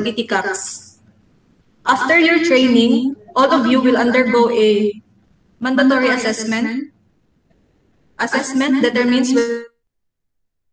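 A woman speaks calmly through an online call, presenting.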